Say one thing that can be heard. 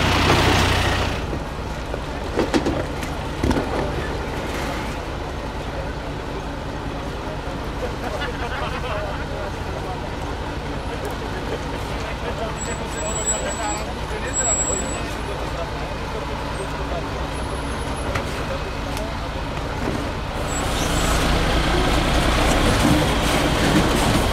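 Rocks crunch and scrape under the truck's tyres.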